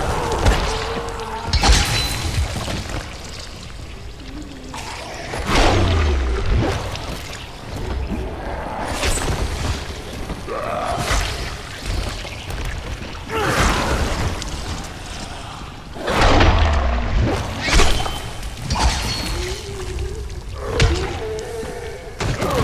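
A blade slashes and thuds into bodies again and again.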